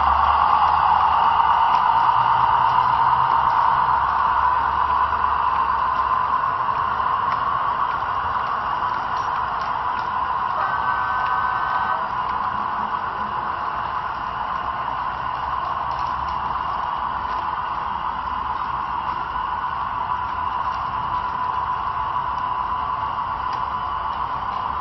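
Model train wheels click over rail joints.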